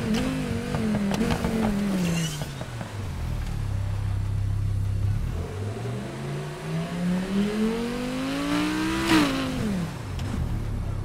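A sports car engine idles, then revs up and down.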